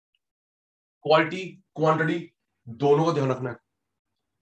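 A man speaks calmly into a clip-on microphone.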